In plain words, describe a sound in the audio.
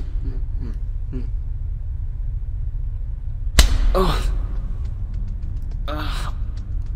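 A young man laughs in short, strained bursts close by.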